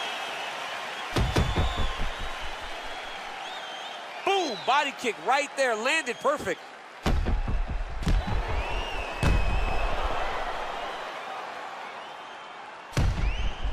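Blows thud as fighters kick and punch each other.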